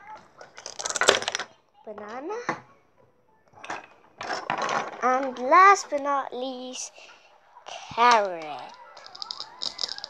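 A toy knife taps and cuts through plastic toy food.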